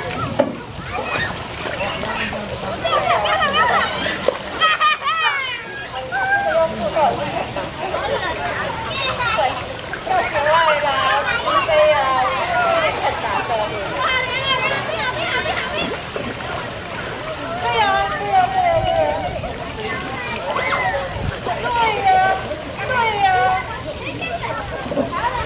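Water splashes as children wade and play in a shallow pool.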